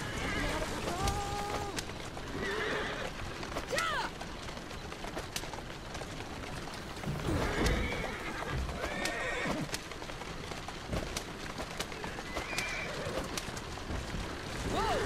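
Carriage wheels rumble over a rough street.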